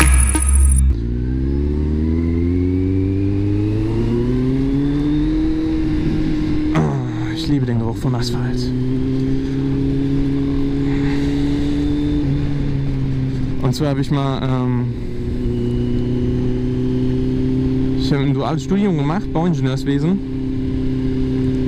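A motorcycle engine hums steadily and rises and falls in pitch as the rider accelerates and shifts gears.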